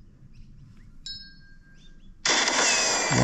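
A phone gives a short electronic tone.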